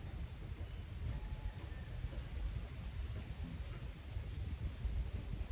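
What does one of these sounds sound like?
Wind gusts and rumbles against the microphone outdoors.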